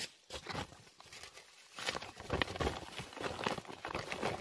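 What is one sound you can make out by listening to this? A plastic sack rustles and crinkles as it is handled.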